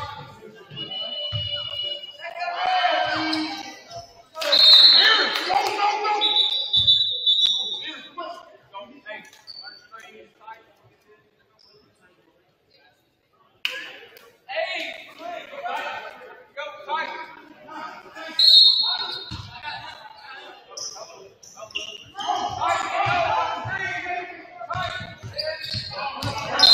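Players shout and call out to each other in a large echoing gym.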